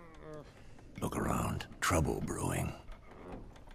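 An older man replies in a calm, deep voice.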